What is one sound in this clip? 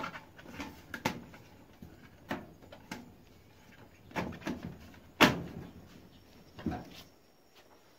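A metal tray scrapes and clanks as a hand slides it into a metal stove.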